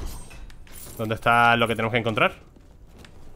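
Coins jingle in a video game as they are collected.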